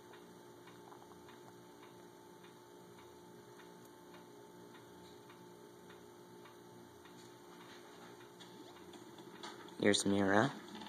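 Electronic game music plays softly with a steady, ticking beat.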